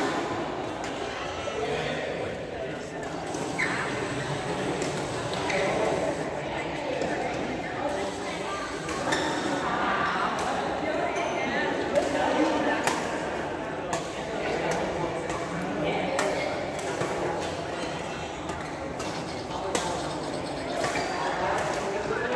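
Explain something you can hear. People chatter and call out in a large echoing hall.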